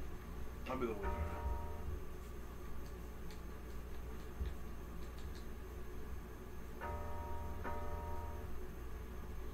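A video game plays short electronic chimes.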